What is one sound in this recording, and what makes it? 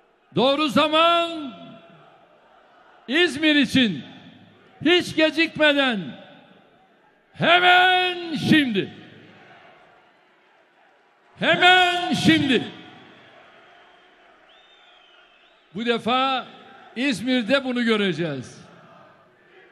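A large crowd chants together in loud, repeated bursts in an echoing hall.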